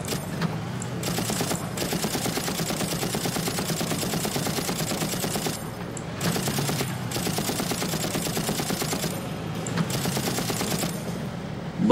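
A mounted machine gun fires in long rapid bursts.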